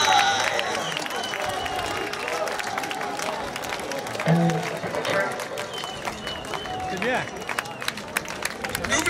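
A man speaks through a microphone to the crowd.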